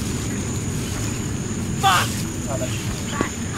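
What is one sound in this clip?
Tall grass rustles as a soldier crawls through it.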